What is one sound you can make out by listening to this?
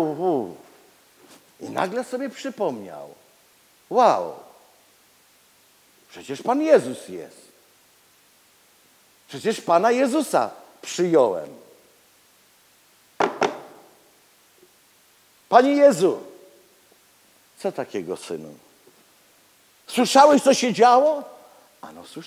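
A middle-aged man speaks with animation through a microphone in an echoing hall, pausing often.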